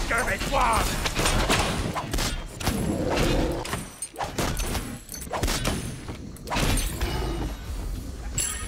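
Game magic spell effects burst and whoosh.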